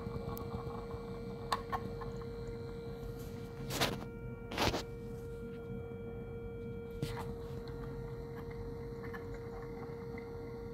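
A loudspeaker horn gives off a steady, low humming tone.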